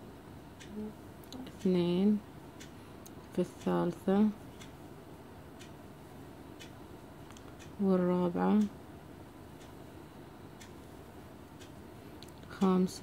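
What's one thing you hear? A crochet hook softly draws yarn through stitches.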